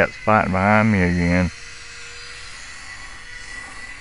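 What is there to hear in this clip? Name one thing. A model airplane's motor buzzes faintly overhead.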